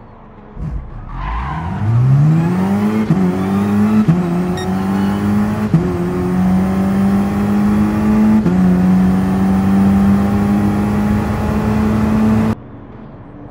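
A car engine revs up hard, rising in pitch through quick gear changes.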